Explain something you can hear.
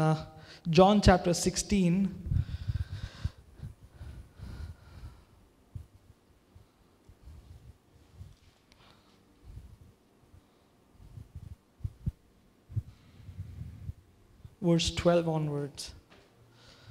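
A man speaks slowly and calmly into a microphone in a large room.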